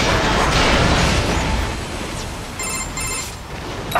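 Metal clangs as a heavy body crashes to the ground.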